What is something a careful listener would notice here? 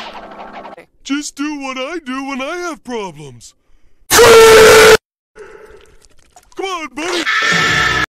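A cartoon man speaks cheerfully with a goofy voice.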